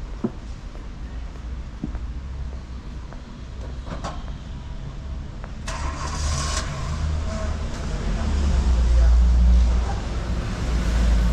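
Traffic rumbles past on a nearby street, growing louder toward the end.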